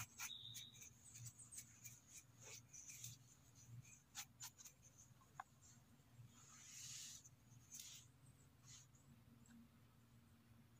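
Fingers rub and scrape against a firm mushroom close by.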